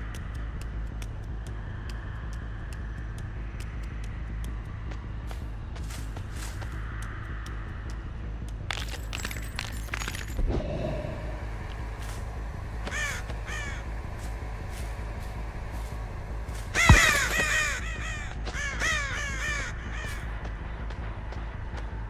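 Footsteps tap and crunch along at a steady walking pace.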